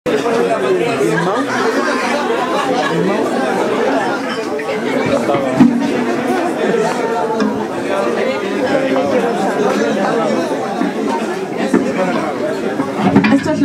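A band plays loud live music in a small echoing room.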